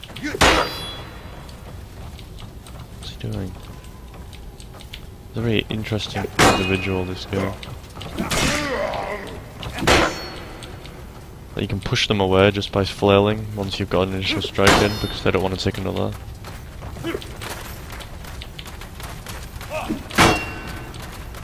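Swords clash and ring with sharp metallic strikes.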